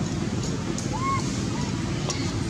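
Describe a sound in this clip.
A baby monkey gives a short, soft squeak.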